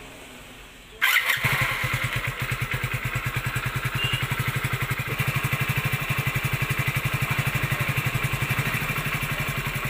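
A motorcycle engine starts and idles with a steady, rapid putter.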